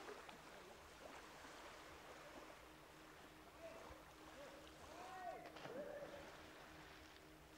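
Gentle waves lap softly against a rocky shore.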